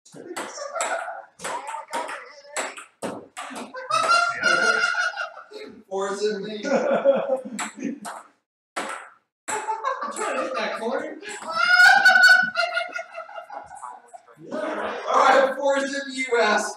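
A ping-pong ball clicks on a table and paddles.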